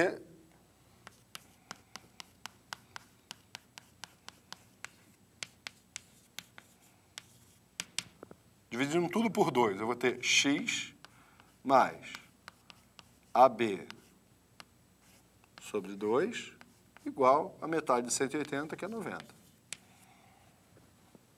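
Chalk taps and scratches on a board in quick strokes.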